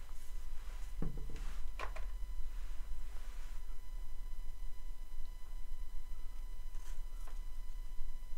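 Small wooden pieces click and tap against a board.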